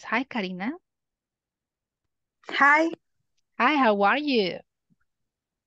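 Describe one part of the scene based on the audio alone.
A woman speaks with animation over an online call, in short bursts.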